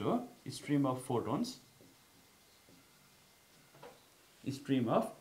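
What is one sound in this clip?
A man speaks calmly, as if teaching, close by.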